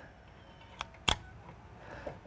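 A crimping tool clicks shut on a connector.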